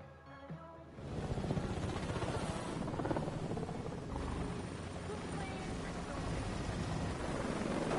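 A helicopter's rotor blades chop loudly close by.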